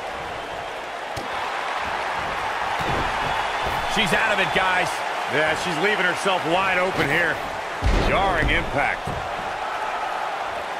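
A crowd cheers in an arena.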